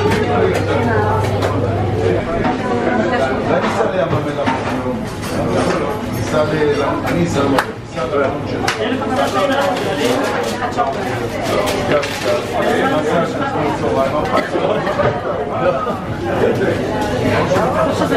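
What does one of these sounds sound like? Several adults talk at once nearby.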